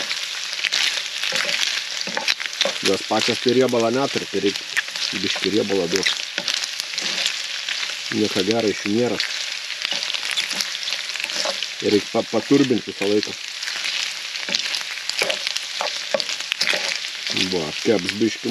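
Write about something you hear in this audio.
Meat sizzles and crackles in a hot frying pan.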